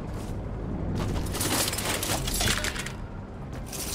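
A chest creaks open with a bright, rattling shimmer.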